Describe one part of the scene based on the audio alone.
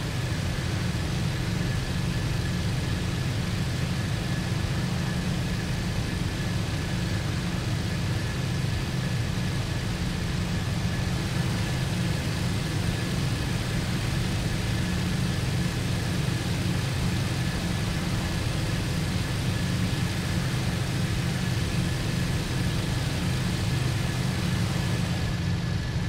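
A propeller aircraft engine drones steadily and loudly from inside a cockpit.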